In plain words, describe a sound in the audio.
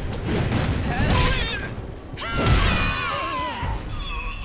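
Blades clash and strike in a fierce fight.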